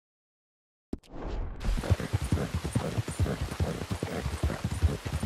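A horse gallops, its hooves thudding quickly on a dirt track.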